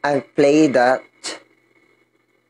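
A young man speaks loudly and with animation close to a microphone.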